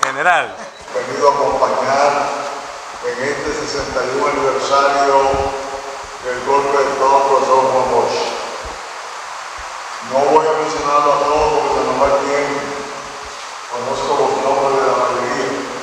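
A man sings through a loudspeaker in a large echoing hall.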